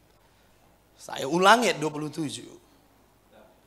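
A middle-aged man speaks with feeling into a microphone.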